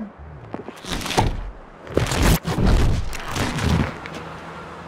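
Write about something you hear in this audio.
A loud, heavy rumbling crash bursts out as a huge figure transforms.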